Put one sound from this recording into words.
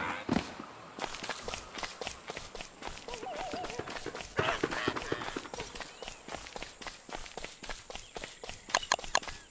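Footsteps patter quickly over ground.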